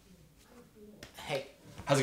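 A young man shouts excitedly.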